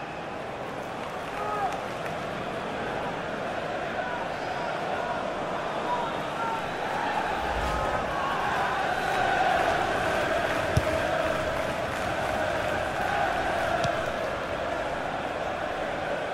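A large stadium crowd cheers and chants loudly throughout.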